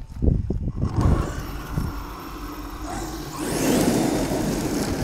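A toy car's motor whirs as the car drives off over gravel.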